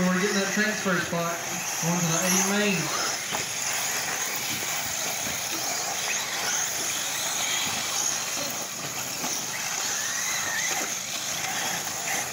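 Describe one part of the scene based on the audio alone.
Small electric model cars whine and buzz as they race.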